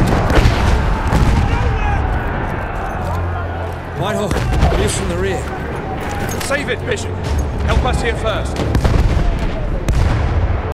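Gunshots crack repeatedly in a battle.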